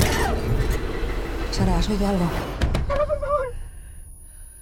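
A woman speaks sharply.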